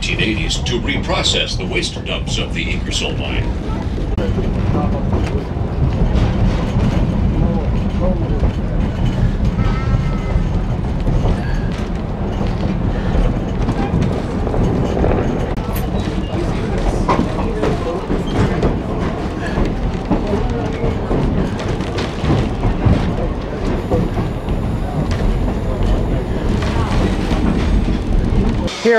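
Train wheels clack over the rails.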